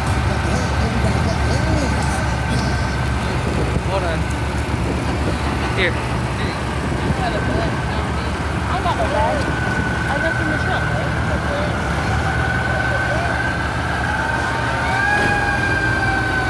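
A truck's diesel engine rumbles as it rolls slowly past.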